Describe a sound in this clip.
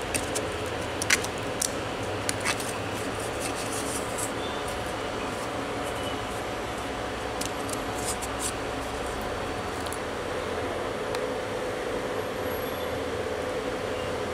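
A machine fan hums steadily.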